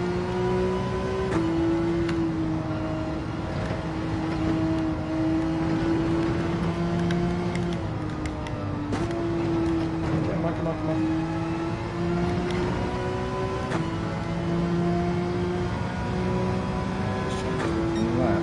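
Tyres hum on the track surface.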